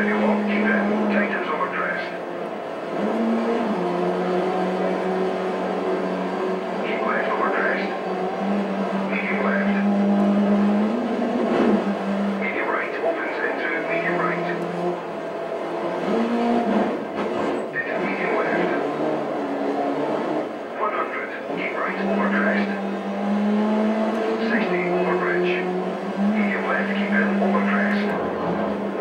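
A racing video game's car engine hums and revs through speakers.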